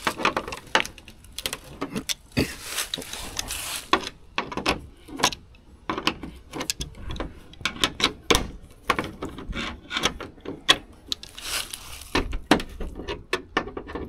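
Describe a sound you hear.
Metal pliers click and scrape against a bolt.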